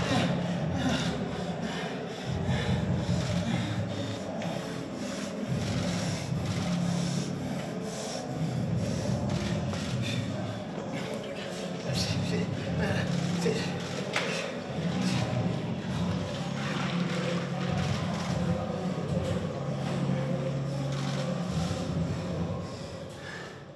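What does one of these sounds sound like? A man pants and groans heavily, close by.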